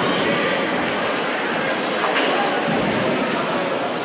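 Pins crash loudly in an echoing hall.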